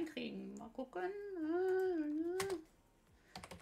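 A young woman sings a short wavering note.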